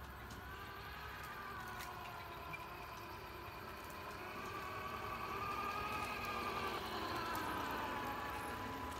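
A toy truck's electric motor whines as it drives closer over paving stones.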